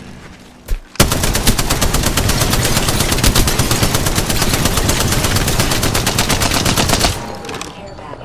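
Rapid automatic gunfire rattles in quick bursts.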